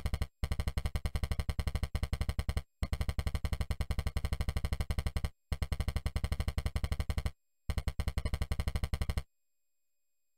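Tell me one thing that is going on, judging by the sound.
Rapid electronic blips tick out in quick bursts, with short pauses between them.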